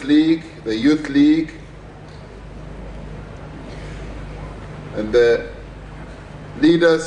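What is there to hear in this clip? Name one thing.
A middle-aged man speaks slowly and formally into a microphone, with long pauses.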